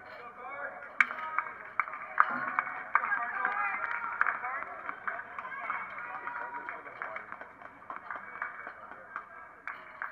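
Tennis balls are struck sharply back and forth by rackets.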